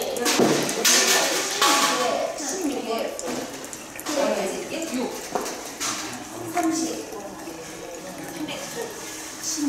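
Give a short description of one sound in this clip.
Liquid pours from a tap into a jug.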